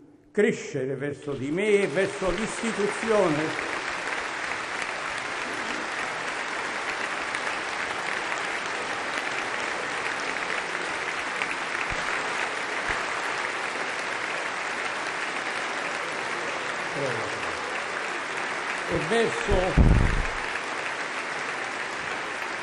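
A large crowd applauds steadily in a large hall.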